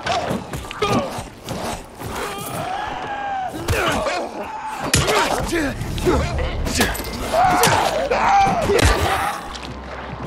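A zombie growls and groans.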